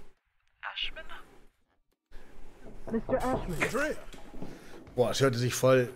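A man speaks into a telephone receiver in a low voice.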